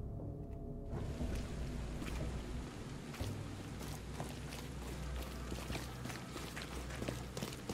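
Footsteps walk quickly over a hard street.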